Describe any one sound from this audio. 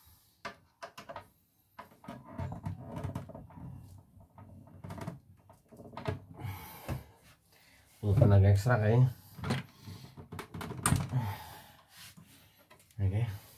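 Plastic parts click and knock as a screwdriver works on a machine.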